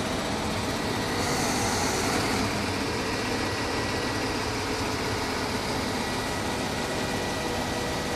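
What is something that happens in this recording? A diesel engine on a truck crane runs.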